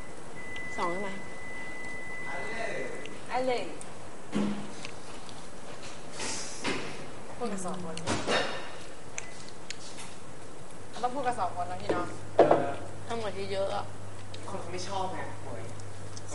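A young woman speaks calmly at close range.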